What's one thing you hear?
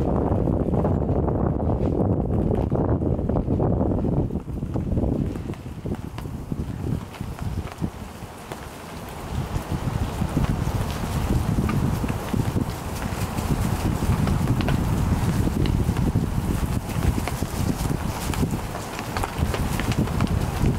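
Puppies scamper and rustle through dry wood shavings.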